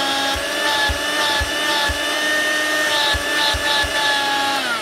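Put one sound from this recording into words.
A hose attachment knocks and clicks against a vacuum cleaner.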